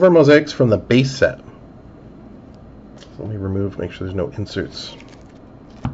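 Trading cards rustle softly as hands flip through a stack.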